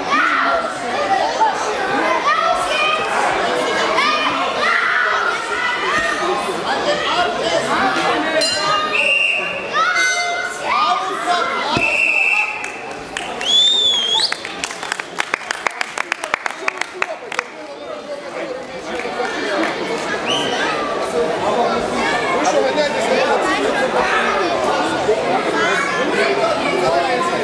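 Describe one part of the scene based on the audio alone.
A crowd of adults and children chatters and calls out in a large echoing hall.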